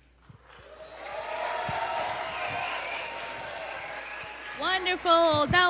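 A crowd cheers loudly in a large hall.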